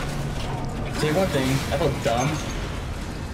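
Ice shatters with a loud crash.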